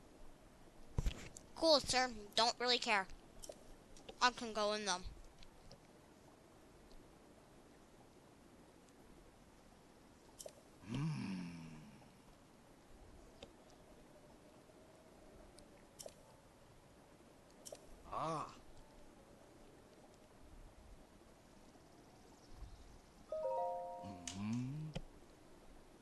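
A man makes short, excited grunting voice sounds.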